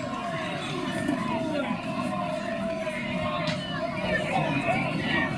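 A crowd of spectators murmurs and calls out from the stands.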